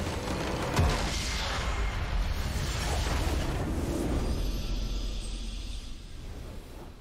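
A crystal structure shatters with a loud crash.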